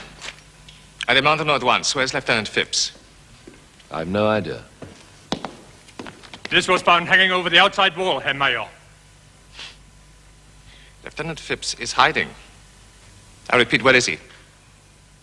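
A man speaks firmly and clearly close by.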